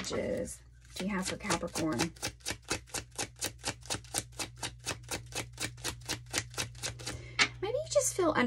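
Playing cards are shuffled with a quick, rapid flutter.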